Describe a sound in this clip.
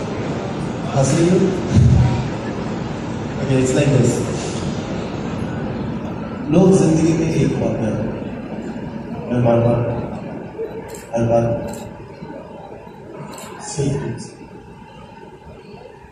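A young man speaks through a loudspeaker microphone, with feeling.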